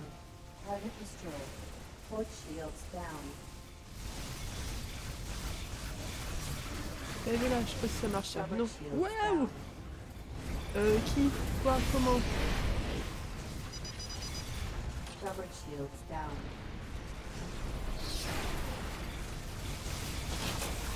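Spaceship engines roar steadily.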